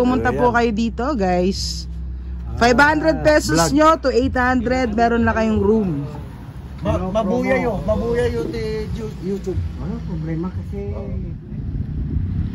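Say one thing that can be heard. A woman talks with animation close by.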